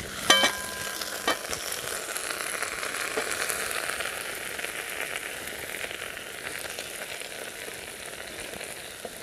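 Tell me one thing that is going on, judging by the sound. Stew simmers and bubbles over a fire.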